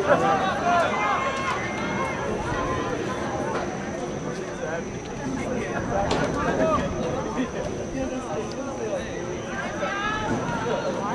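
Spectators chatter and call out nearby, outdoors.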